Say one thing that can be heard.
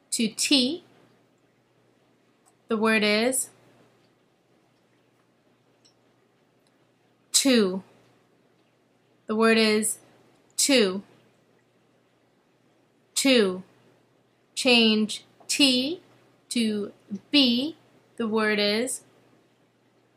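A young woman speaks calmly and closely into a microphone, in short phrases with pauses.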